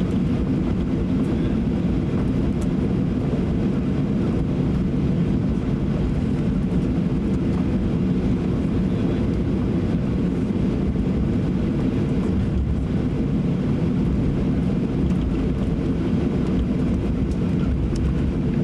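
A Boeing 737-800's jet engines hum at idle inside the cabin as the airliner taxis.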